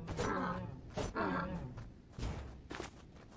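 A weapon strikes with heavy thuds.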